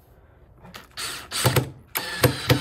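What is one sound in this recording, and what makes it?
A cordless drill whirs in short bursts, driving a screw into wood.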